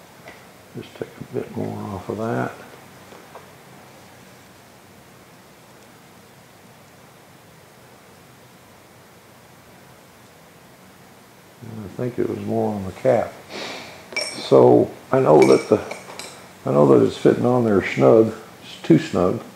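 Small metal parts click together in a man's hands.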